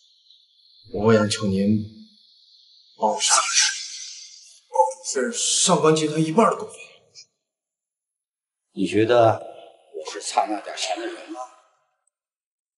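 A young man speaks in a low, pleading voice close by.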